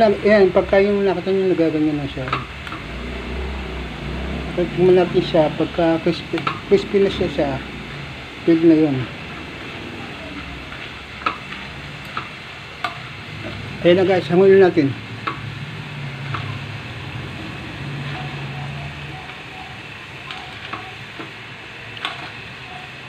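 Metal tongs clink against a metal pan.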